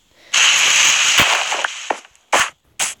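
Dirt crumbles as it breaks apart.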